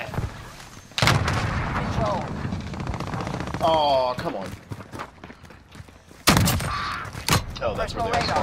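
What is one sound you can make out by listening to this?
A shotgun fires loud booming blasts.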